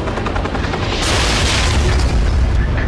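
An explosion bursts with a loud, deep boom.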